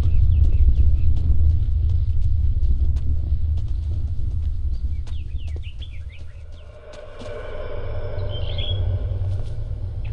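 Footsteps crunch on grass and stone.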